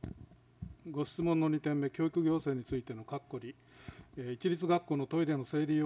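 A middle-aged man speaks calmly and formally into a microphone.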